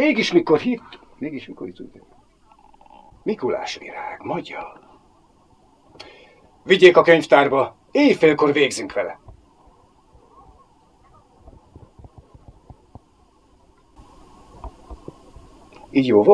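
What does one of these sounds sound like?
An elderly man reads aloud calmly and clearly into a close microphone.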